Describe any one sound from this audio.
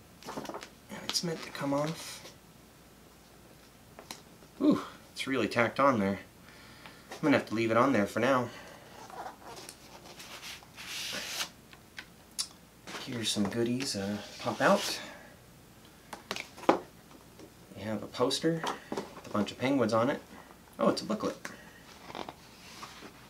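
Stiff paper sleeves rustle and slide as they are handled.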